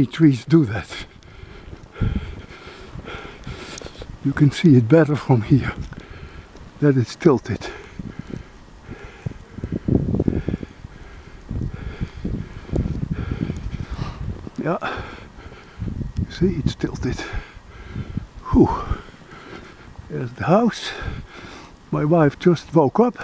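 Wind gusts outdoors and buffets loudly.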